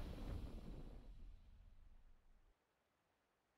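A game's victory fanfare swells and fades.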